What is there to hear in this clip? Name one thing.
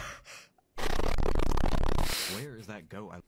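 A young man screams loudly through a microphone.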